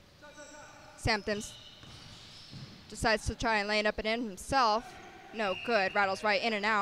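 Sneakers squeak sharply on a wooden floor in an echoing gym.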